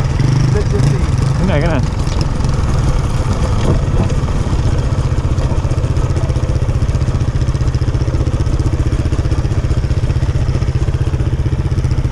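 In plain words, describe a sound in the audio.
A dirt bike engine drones loudly up close, throbbing rapidly as it climbs.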